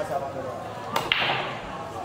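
A cue strikes a pool ball with a sharp crack.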